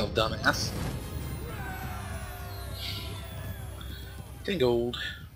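A triumphant game fanfare plays with bright chimes.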